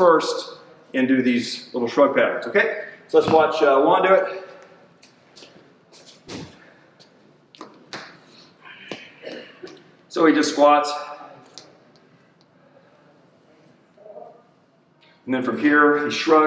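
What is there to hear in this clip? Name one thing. An older man speaks calmly and clearly.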